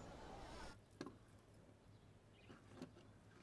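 A wooden box lid creaks open.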